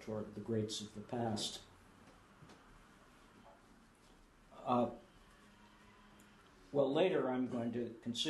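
An elderly man speaks calmly and haltingly, with pauses.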